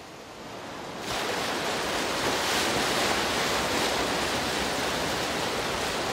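Water gushes and churns up from a large pipe.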